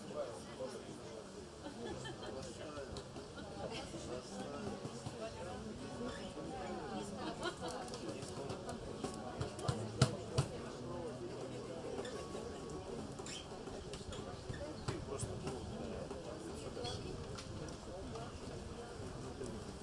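A cajon drum taps out a beat.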